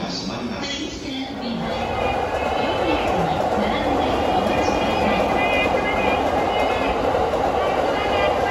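A train rumbles and screeches as it pulls away.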